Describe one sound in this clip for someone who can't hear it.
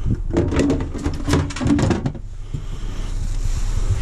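A plastic cover knocks as it is set into a sink.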